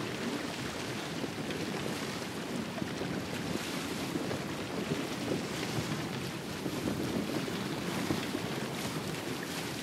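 Wind flaps a sail.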